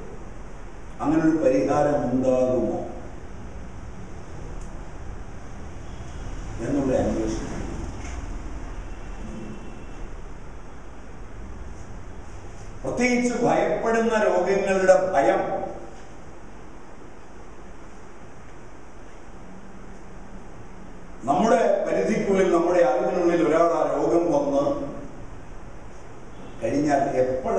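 An elderly man speaks with animation in bursts through a microphone, with pauses between.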